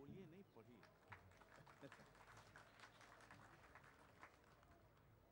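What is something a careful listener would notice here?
An audience laughs and claps briefly.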